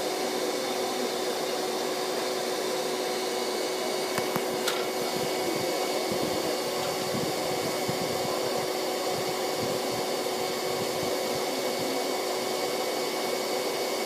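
A swarm of bees buzzes loudly and steadily close by.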